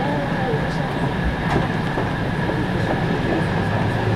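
An electric commuter train pulls away, heard from inside.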